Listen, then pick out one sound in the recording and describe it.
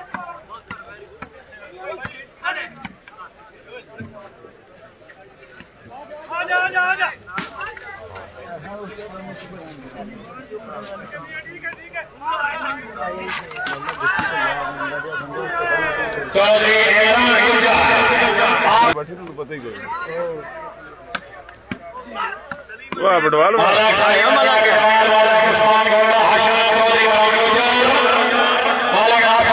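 A large crowd chatters and shouts outdoors.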